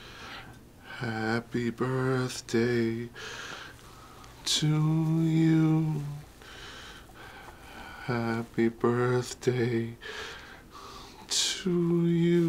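A middle-aged man speaks close by in a shaky, tearful voice.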